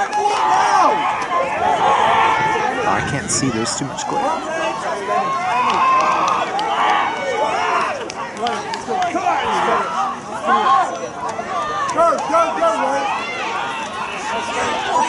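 Young women shout and call out to each other outdoors, some distance away.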